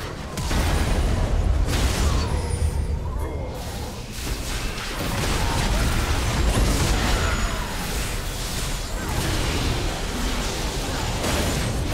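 Game combat effects whoosh, clash and burst in quick succession.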